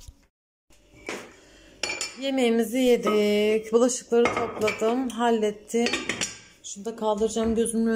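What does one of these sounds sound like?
A glass lid clinks against a metal pot.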